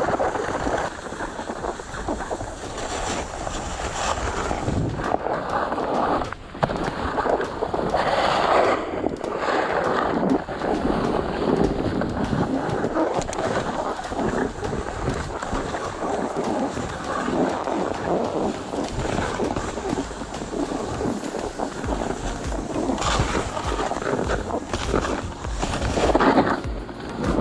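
Wind rushes past while riding downhill outdoors.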